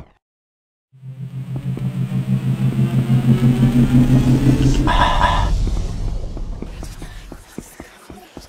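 A magic spell hums and swells loudly, then fades.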